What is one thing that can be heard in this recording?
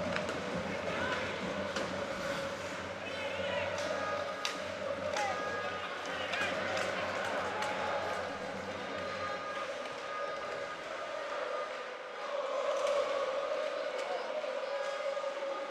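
Skates scrape and hiss on ice.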